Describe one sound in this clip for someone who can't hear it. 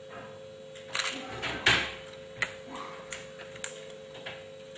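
Cabinet doors knock and click as a man handles them.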